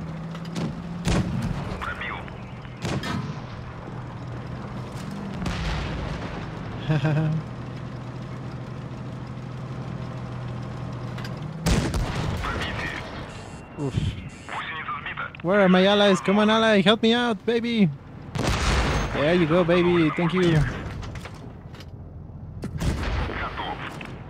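Tank cannons fire with loud booms.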